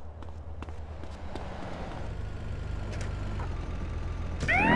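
A car engine hums nearby.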